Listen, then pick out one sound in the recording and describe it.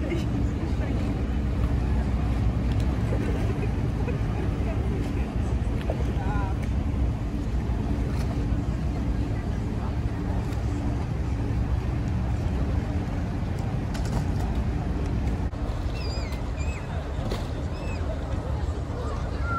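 River water laps against a stone embankment.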